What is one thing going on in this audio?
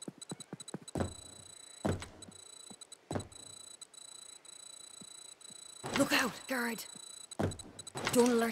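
Footsteps thud on hard ground.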